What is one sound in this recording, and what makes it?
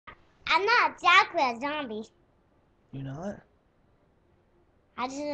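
A young boy talks excitedly close to the microphone.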